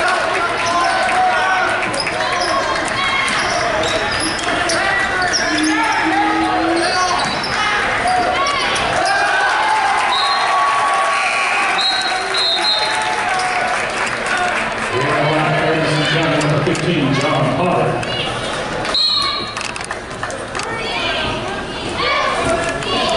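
A crowd of spectators chatters and cheers in an echoing hall.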